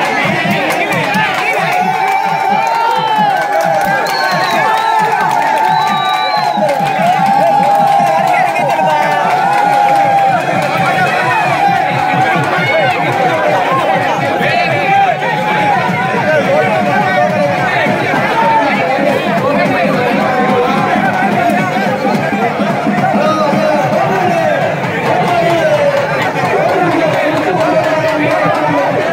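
A large crowd shouts and cheers loudly all around.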